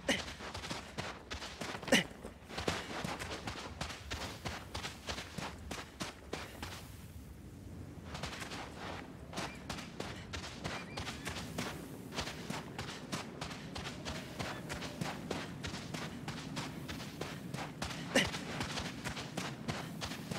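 Footsteps crunch quickly on sand and gravel.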